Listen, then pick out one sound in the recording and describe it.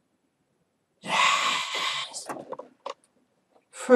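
A young man shouts loudly and excitedly close to a microphone.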